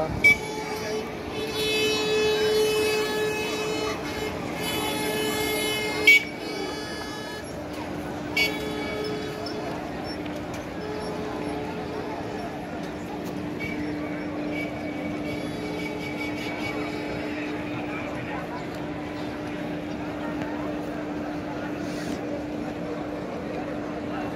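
Electric carts hum steadily as they roll by.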